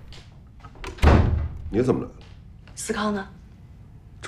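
A woman calls out from across the room.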